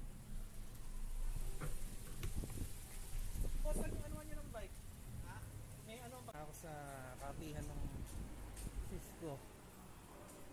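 A bicycle rolls over pavement with a low rumble.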